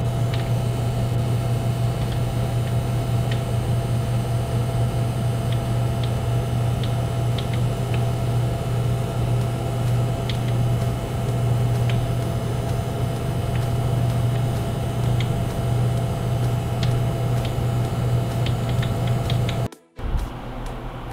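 A computer graphics card hums and buzzes steadily up close, with a high whine.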